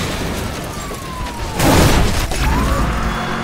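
A car crashes and tumbles with loud metal crunching.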